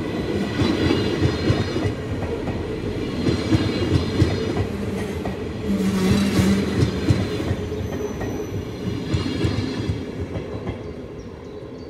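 A train rumbles past close by and fades away.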